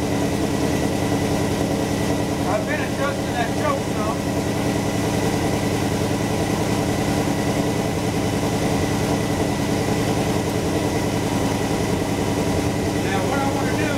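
A car engine idles steadily with a fast, even chugging close by.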